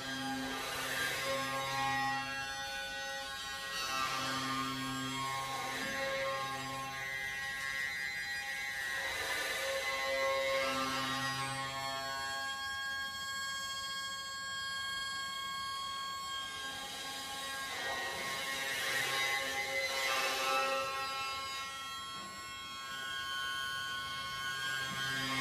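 A bass saxophone plays low, long notes.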